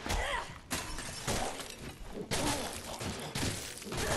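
A heavy weapon strikes a body with dull, wet thuds.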